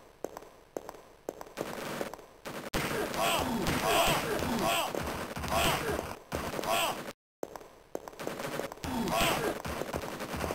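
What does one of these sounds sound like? A weapon fires shots repeatedly with sharp zapping bursts.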